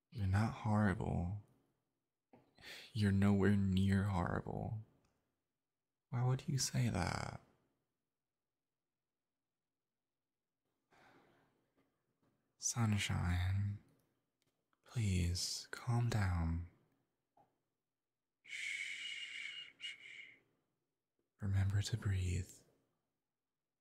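A young man speaks softly and gently, close to a microphone, with pauses.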